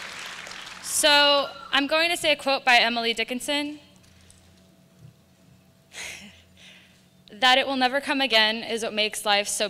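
A young woman speaks calmly into a microphone through loudspeakers.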